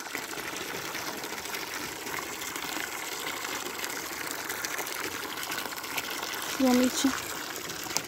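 Calves slurp water from a bucket.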